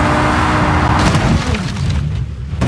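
Glass shatters in a car crash.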